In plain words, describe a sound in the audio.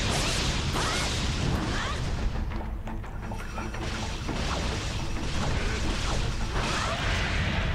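Magical energy bursts crackle and hiss.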